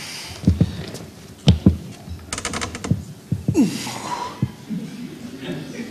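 A chair knocks on a wooden floor.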